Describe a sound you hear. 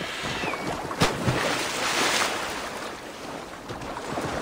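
Water splashes and churns as a horse wades through a river.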